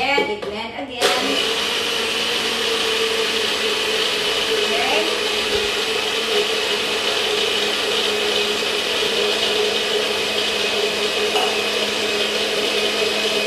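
A blender whirs loudly and steadily.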